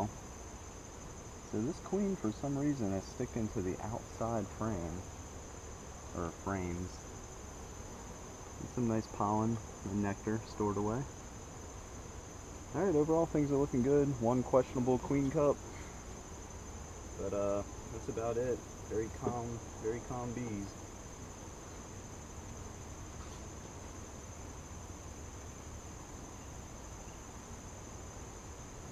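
Bees buzz softly around the hive.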